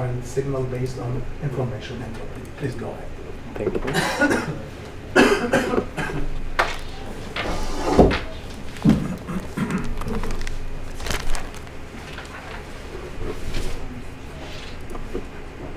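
An elderly man speaks calmly into a microphone in a room with some echo.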